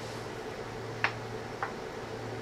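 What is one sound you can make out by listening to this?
A small piece of wood knocks against a wooden frame.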